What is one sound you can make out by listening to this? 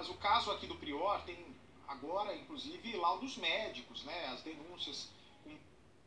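A young man speaks with animation through a television speaker.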